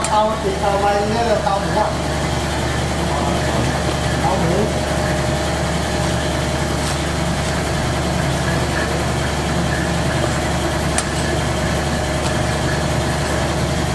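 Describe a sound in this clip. A cleaver slices through raw meat and knocks on a wooden block.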